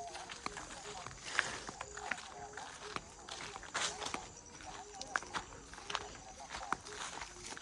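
Footsteps crunch and swish through tall grass.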